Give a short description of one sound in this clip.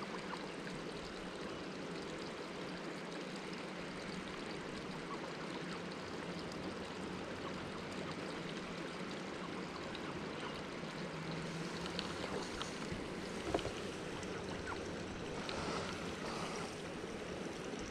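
Wind rushes steadily across the microphone outdoors.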